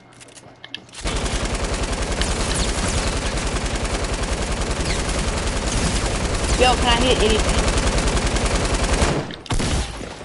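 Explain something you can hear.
Rapid gunfire rattles steadily.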